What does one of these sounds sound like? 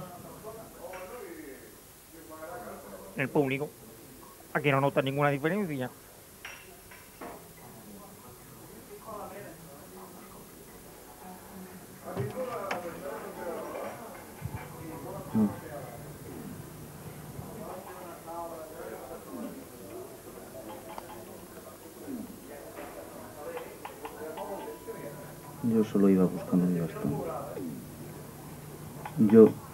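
A man speaks and sings dramatically into a microphone.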